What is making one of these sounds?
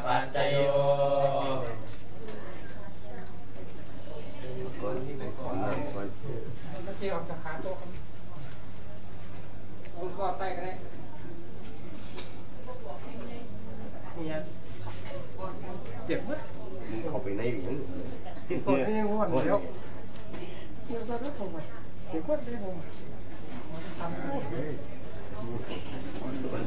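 Several men chant together in a low, steady drone, in a room with some echo.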